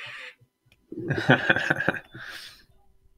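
A young man laughs through a headset microphone.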